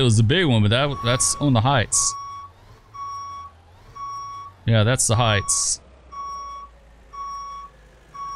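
A reversing alarm beeps repeatedly at an even pace.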